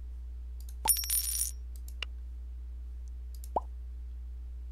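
Game menu clicks and chimes sound.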